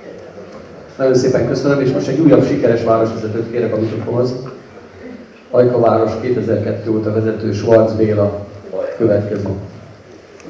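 An older man speaks calmly through a microphone in an echoing hall.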